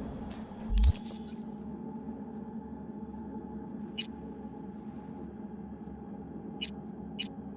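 Short electronic menu beeps and clicks sound as selections are made.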